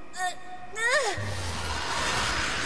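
A loud blast bursts.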